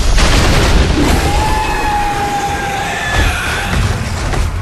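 Large creatures screech with shrill, wavering cries.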